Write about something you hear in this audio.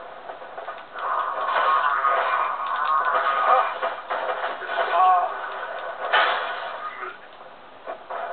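Weapons clash and strike in a fight, heard through a television speaker.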